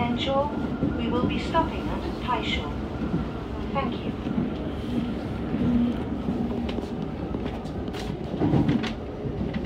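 A train rumbles steadily along the tracks from inside the cab.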